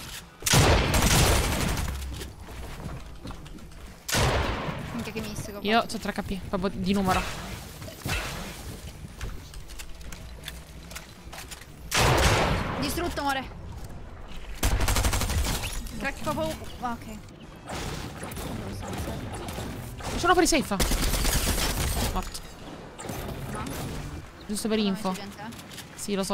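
A young woman talks into a microphone with animation.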